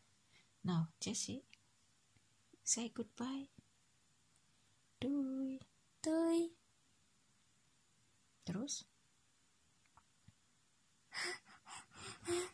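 A young girl talks and laughs close by.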